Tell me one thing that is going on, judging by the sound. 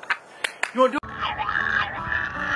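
A dog howls loudly.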